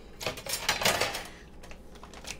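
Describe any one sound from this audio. Water splashes and sloshes as a hand stirs it.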